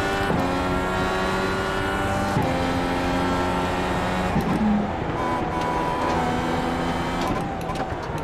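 A race car engine screams at high revs, dropping in pitch with each sharp gear change.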